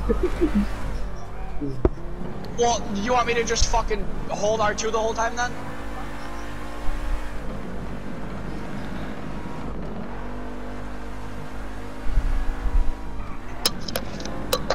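A car engine hums steadily and revs.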